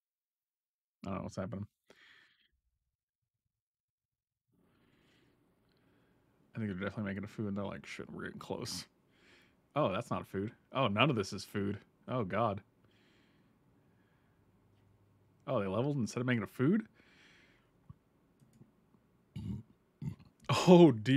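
A man talks with animation into a close microphone, in bursts with pauses.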